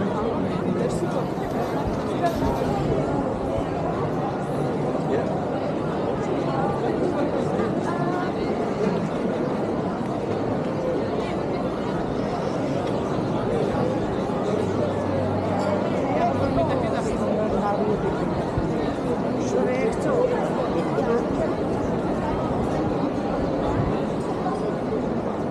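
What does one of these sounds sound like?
A crowd of people chatters and murmurs all around outdoors.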